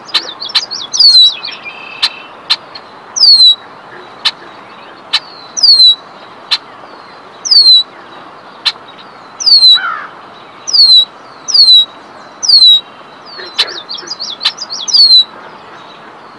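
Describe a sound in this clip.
A bird sings close by in short, repeated, falling whistles.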